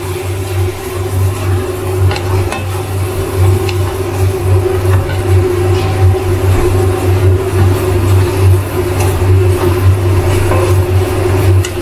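Onions and peppers sizzle in a hot pan.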